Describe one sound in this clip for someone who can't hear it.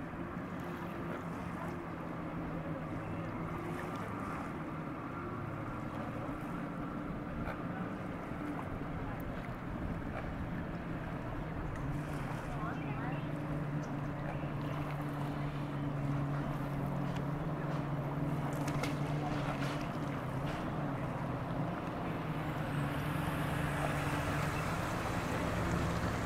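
A motorboat engine drones steadily across the water.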